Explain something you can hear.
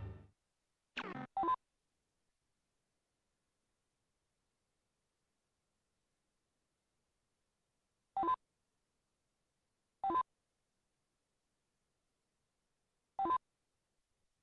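Short electronic menu beeps chime now and then.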